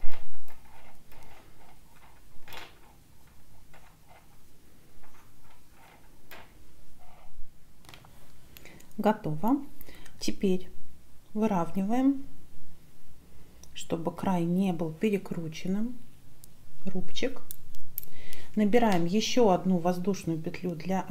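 Metal knitting needles click and tap softly.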